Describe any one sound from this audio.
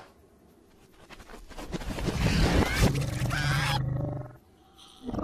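A cartoon crocodile growls and grumbles.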